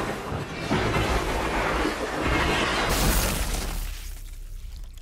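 Heavy blows ring out in a fierce struggle.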